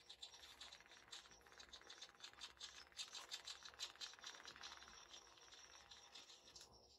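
A small servo motor whirs as it sweeps back and forth.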